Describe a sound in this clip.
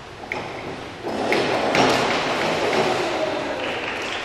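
A diver splashes into a pool.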